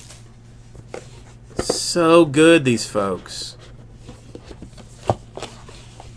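A cardboard lid slides off a box.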